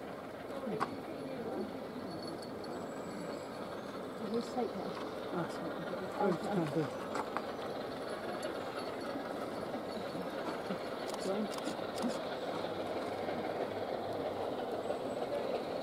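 A steam locomotive chuffs steadily as its train rumbles along the track.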